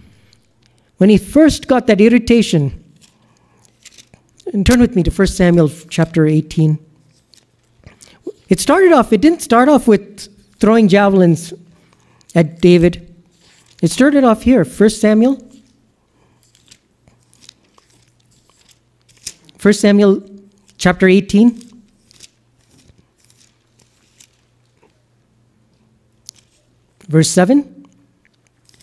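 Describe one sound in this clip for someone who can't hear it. A man speaks calmly into a microphone, pausing between phrases.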